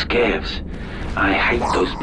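A blaster rifle fires rapid shots.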